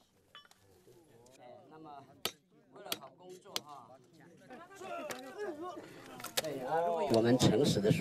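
People murmur and talk nearby.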